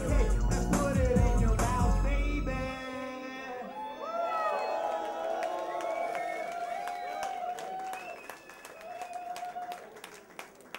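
A young man sings into a microphone over loudspeakers.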